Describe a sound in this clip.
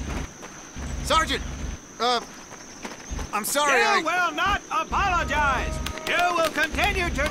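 A man shouts orders.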